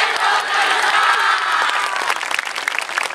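A group of dancers shouts together loudly outdoors.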